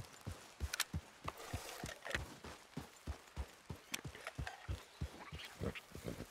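Horse hooves thud steadily on soft ground at a trot.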